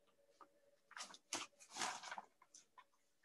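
Paper rustles as a card is handled.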